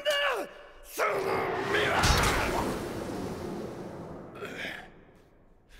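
A sharp whooshing burst swells and slowly fades.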